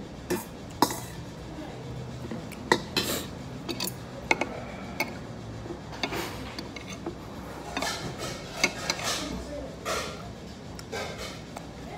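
A spoon scrapes inside a metal bowl.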